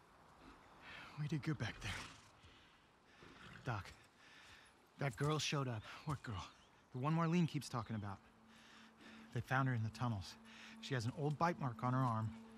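A man speaks calmly and close.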